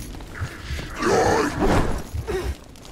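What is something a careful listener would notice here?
Heavy blows and blade strikes land in a close fight.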